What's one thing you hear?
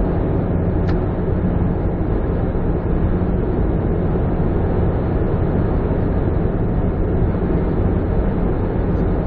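Tyres roll on a highway with a steady roar.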